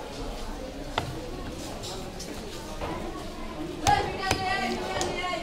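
A heavy knife thumps down on a wooden chopping board.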